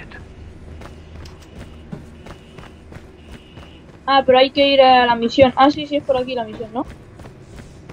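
Footsteps crunch steadily over soft ground.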